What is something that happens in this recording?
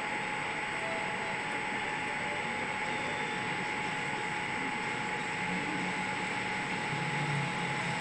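A young man talks calmly into a nearby microphone.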